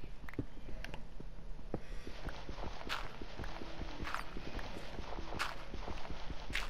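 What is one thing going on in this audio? A pickaxe taps rapidly against stone in a game.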